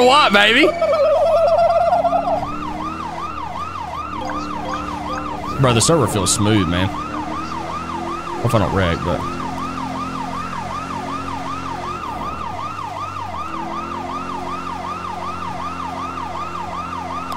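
A police siren wails steadily.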